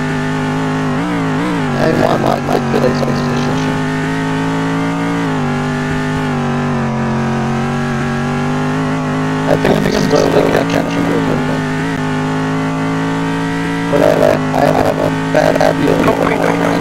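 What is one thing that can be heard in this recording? A racing car engine hums steadily at high revs.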